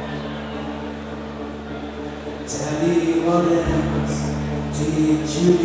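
A live band plays loudly in a large echoing hall.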